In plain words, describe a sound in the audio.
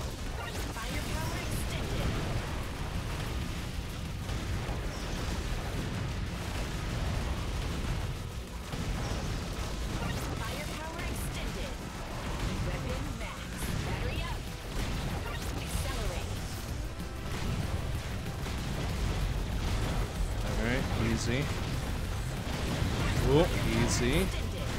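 Video game blasts and explosions crackle steadily.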